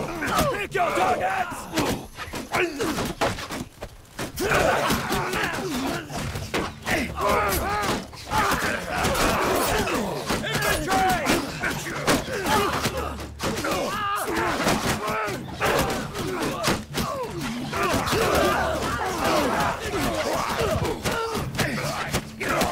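Metal weapons clang and clash against shields.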